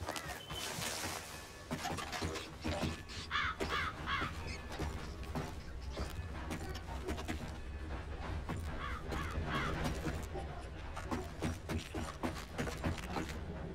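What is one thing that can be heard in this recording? Boots thump on creaking wooden floorboards.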